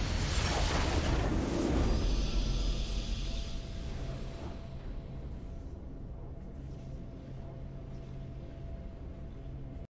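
A loud victory fanfare swells and slowly fades.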